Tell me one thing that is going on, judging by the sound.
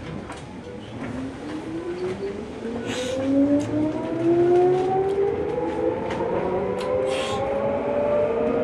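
A train's electric motor whines, rising steadily in pitch as the train pulls away.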